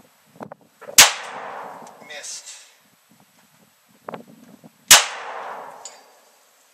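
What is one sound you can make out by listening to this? A pistol fires sharp shots outdoors that echo across open ground.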